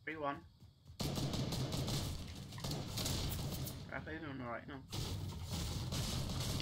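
Gunfire pops rapidly in a video game.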